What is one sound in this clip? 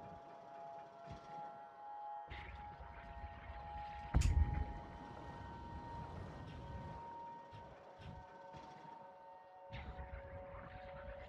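A man talks quietly into a microphone.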